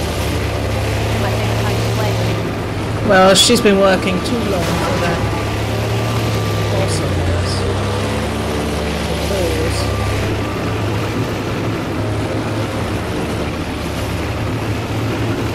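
Water splashes and churns behind a moving boat.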